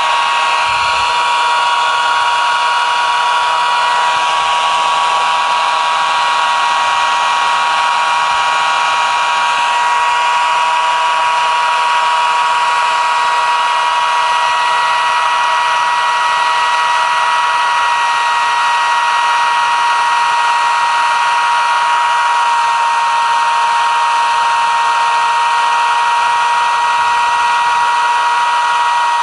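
A chainsaw engine screams loudly and steadily as it cuts into a tree trunk close by.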